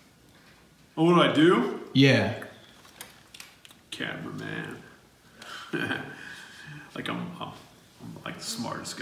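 A man speaks calmly and directly to a listener, close by.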